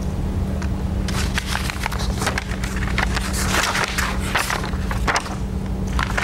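Papers rustle close by.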